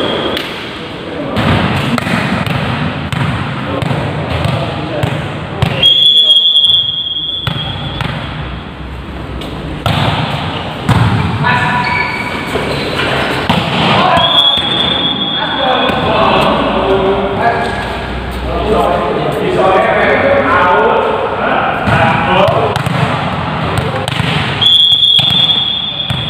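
A volleyball is struck and thumps on the floor in a large echoing hall.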